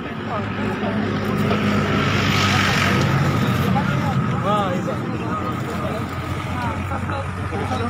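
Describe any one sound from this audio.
Several men and women talk quietly nearby, outdoors.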